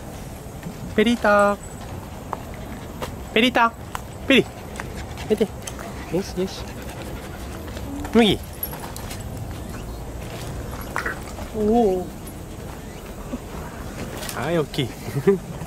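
Small dogs bark and yip on and off.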